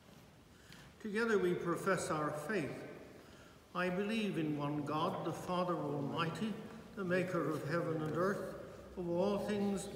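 An elderly man chants in a steady, sung voice in an echoing room.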